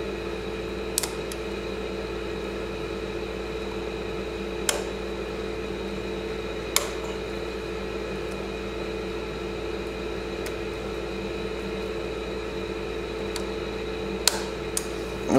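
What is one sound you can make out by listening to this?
A screwdriver clicks and taps against metal engine parts.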